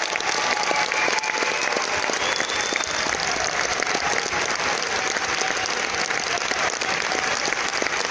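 A brass band plays in a large echoing hall.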